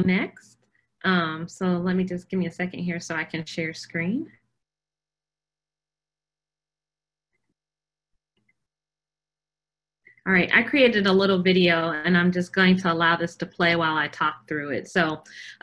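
A woman speaks clearly and with animation over an online call.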